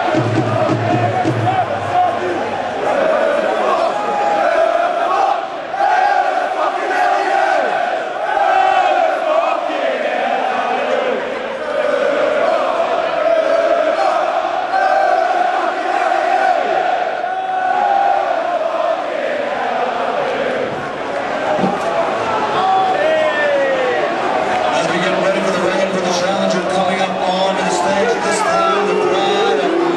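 A large crowd chatters and cheers loudly in a big echoing hall.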